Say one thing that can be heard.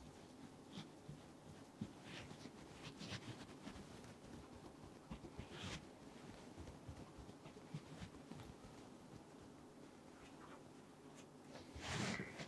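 Hands softly rub and rustle through hair close by.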